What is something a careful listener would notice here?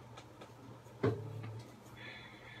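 A guitar knocks against a stand with a dull ringing thud.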